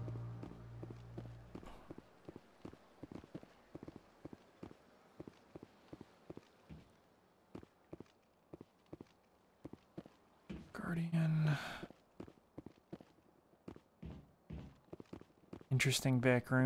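Footsteps tap quickly and steadily on a hard floor.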